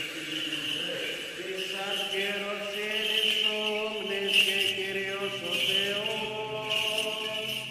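A censer's chains jingle as a man swings it.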